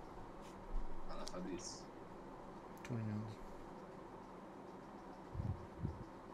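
A man speaks in short, quiet bursts close to a microphone.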